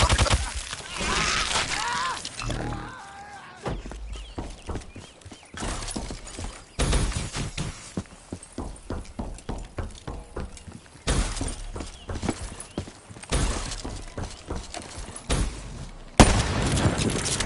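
Gunfire from a video game rattles in rapid bursts.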